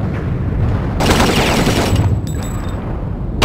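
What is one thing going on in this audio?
Gunfire rattles in short bursts.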